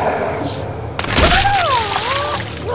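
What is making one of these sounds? Blood splatters with a wet burst.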